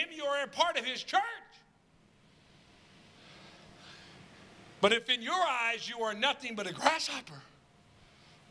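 A middle-aged man speaks emphatically into a microphone, heard through a loudspeaker.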